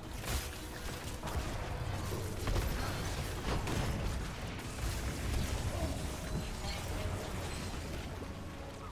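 Video game battle effects zap, crackle and thud in quick bursts.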